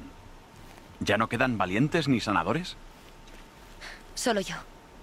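A young woman answers calmly and with concern, close by.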